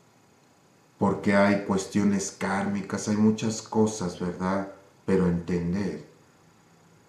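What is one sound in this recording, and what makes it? A middle-aged man speaks calmly and clearly into a close microphone.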